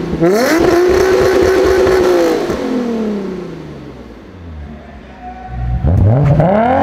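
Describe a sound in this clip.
A sports car engine revs loudly, then falls back and idles.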